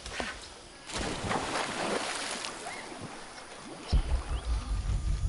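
Water splashes as someone wades through a stream.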